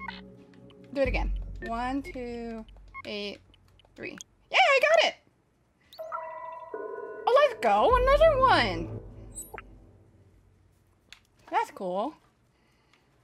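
A young woman talks and exclaims with animation, close to a microphone.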